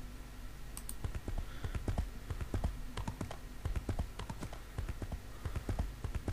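Horse hooves clop on a dirt path at a steady trot.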